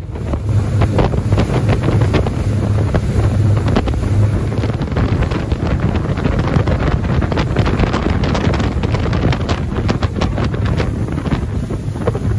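Spray and water rush loudly behind a fast boat.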